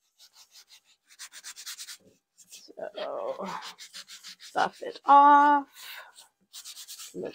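A sanding sponge scrubs rapidly back and forth on a surface.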